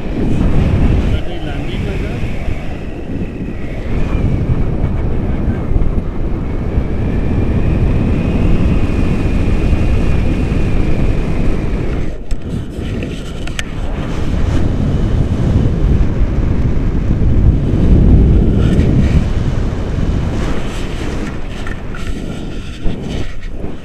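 Wind rushes and buffets the microphone during a paragliding flight.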